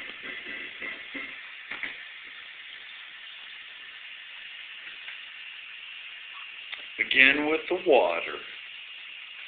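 Liquid trickles through a funnel into a bottle.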